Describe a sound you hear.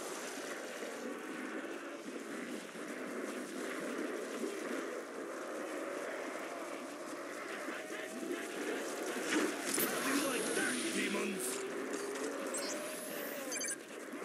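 Monsters groan and moan nearby.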